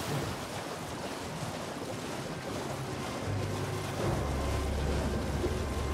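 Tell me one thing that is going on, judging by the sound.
Water splashes steadily as a horse wades through a shallow river.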